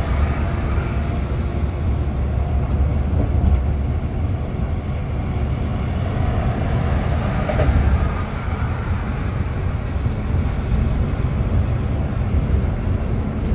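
Tyres roar on the road surface.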